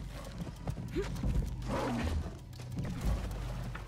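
A big cat snarls and growls close by.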